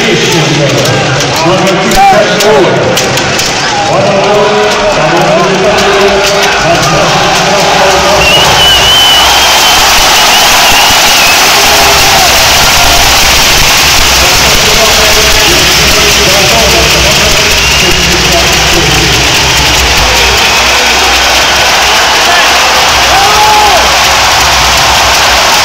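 A large crowd roars and chants in a big echoing arena.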